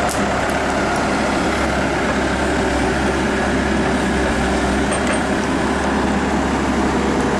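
A diesel engine of an excavator rumbles steadily close by.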